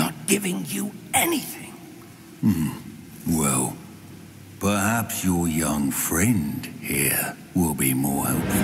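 A goblin man speaks in a low, gravelly voice.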